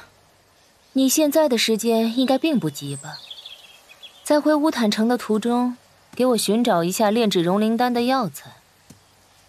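A young woman speaks calmly and clearly, close by.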